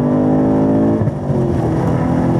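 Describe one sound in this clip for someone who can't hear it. A gearbox shifts with a sudden break in the engine note.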